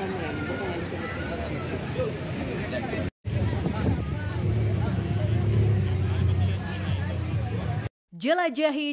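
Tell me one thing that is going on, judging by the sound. A crowd of people chatters and murmurs close by outdoors.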